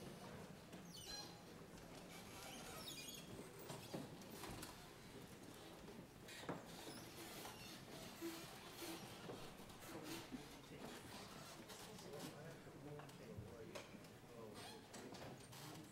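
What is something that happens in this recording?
Footsteps shuffle and knock on a wooden stage.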